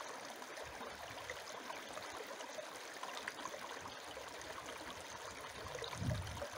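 A shallow stream trickles and babbles over stones.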